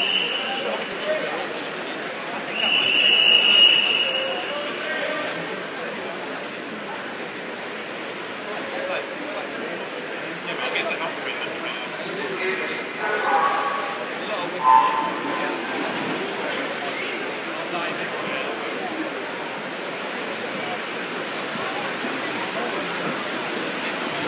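A crowd murmurs and cheers throughout a large, echoing indoor hall.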